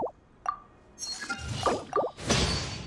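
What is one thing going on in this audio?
Bright chiming effects swell up and shimmer.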